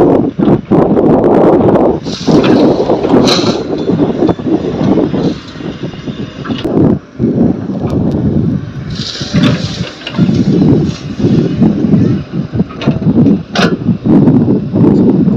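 A diesel excavator engine rumbles and roars steadily.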